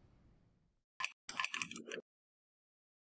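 An elevator button clicks.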